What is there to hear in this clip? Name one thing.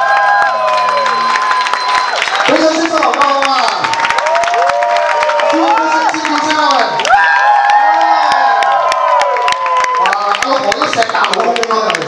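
An audience claps along.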